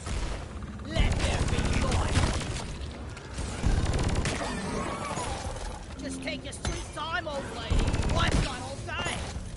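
A plasma gun fires in rapid, crackling bursts.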